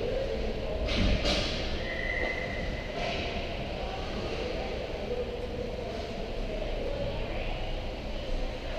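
Skates scrape on ice far off in a large echoing rink.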